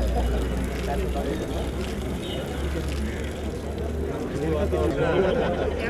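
Water pours from a watering can onto soil.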